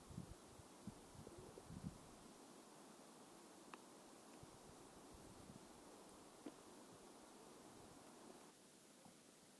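A light breeze rustles leaves outdoors.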